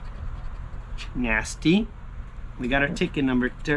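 A coin scratches across a paper ticket.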